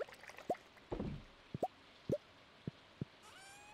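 Short game pops sound as items are picked up.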